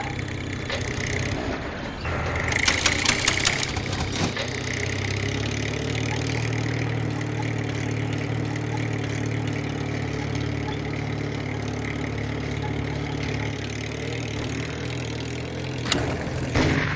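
A tractor engine chugs as the tractor drives.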